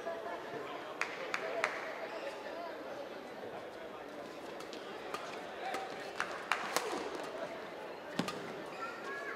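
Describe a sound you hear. Rackets sharply strike a shuttlecock back and forth.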